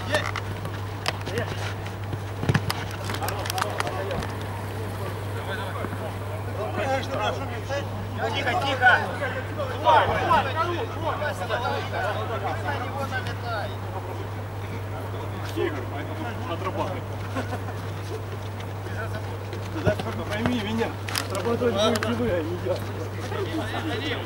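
Young men shout to each other across an outdoor pitch.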